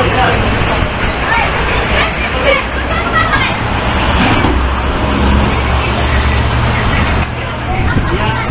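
A bus engine idles nearby with a low rumble.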